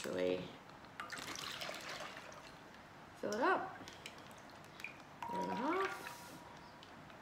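Liquid pours and splashes into a plastic bag.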